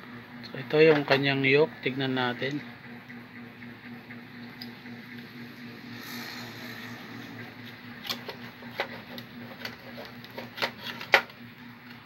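Plastic and board parts knock and click as they are handled.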